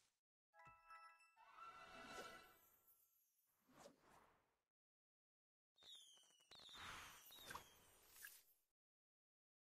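A cheerful game jingle plays with bright chimes.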